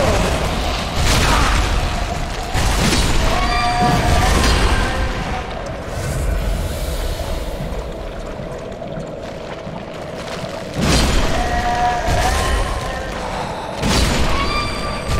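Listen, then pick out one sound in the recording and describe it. A sword slashes and strikes a creature with heavy thuds.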